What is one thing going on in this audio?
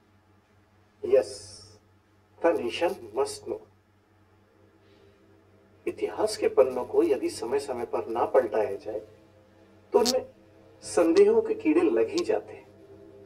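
An elderly man speaks calmly and with emphasis into a microphone.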